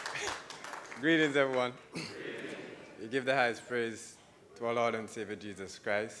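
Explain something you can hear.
A man speaks warmly into a microphone in a large echoing hall.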